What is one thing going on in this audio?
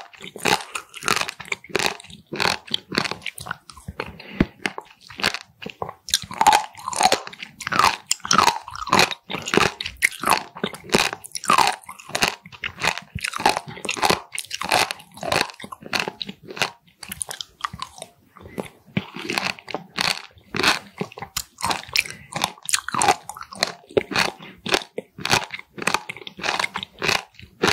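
Chopsticks click against a sauce bowl.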